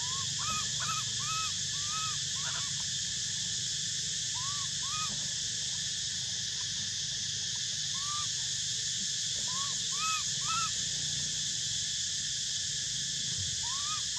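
A baby monkey gives short, high squeaks now and then.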